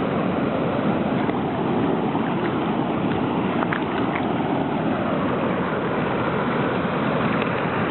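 Shallow water swirls and fizzes around close by.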